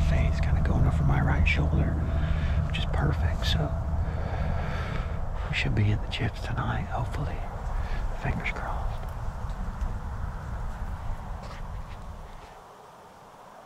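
Wind rushes outdoors.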